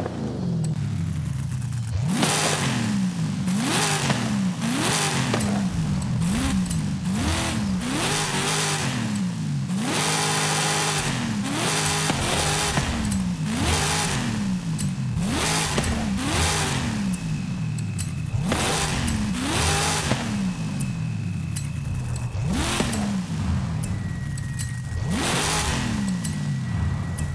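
A powerful car engine revs hard again and again, its roar rising and falling.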